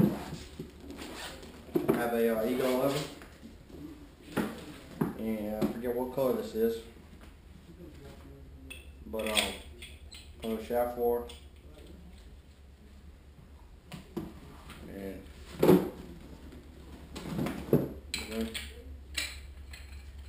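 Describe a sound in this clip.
Gear rustles and knocks as items are pulled from a bag.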